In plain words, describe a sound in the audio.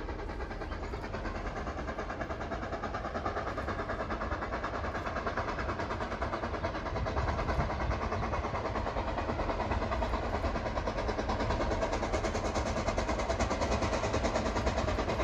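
A train approaches in the distance, its rumble slowly growing louder.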